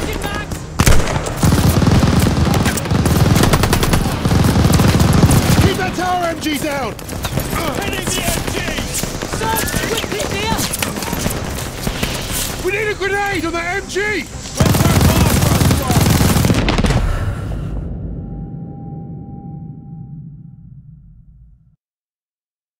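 Explosions boom and rumble loudly.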